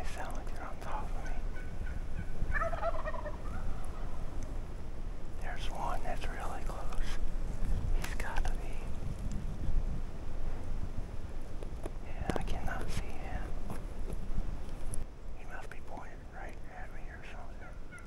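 Wind blows steadily outdoors, rumbling against the microphone.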